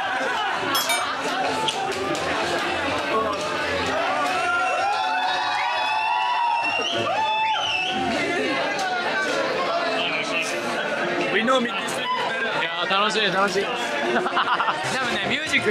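A crowd chatters and cheers loudly in a noisy room.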